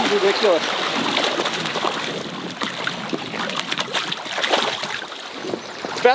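A fish splashes and thrashes in the water.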